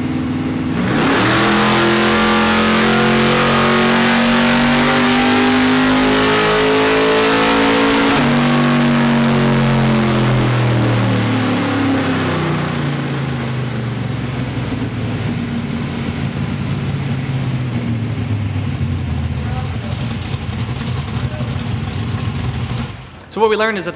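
A loud V8 engine revs up hard to a high roar and then winds down.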